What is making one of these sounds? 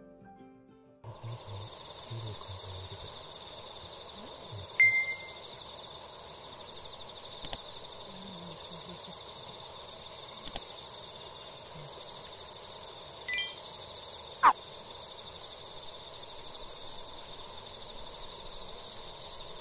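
A small campfire crackles softly.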